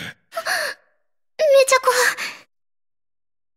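A young girl speaks in a high, surprised voice, close to the microphone.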